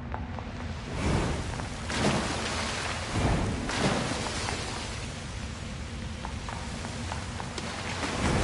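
Blades swish and clash in a fight.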